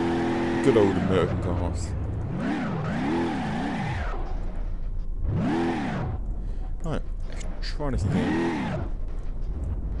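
Tyres screech while the car skids.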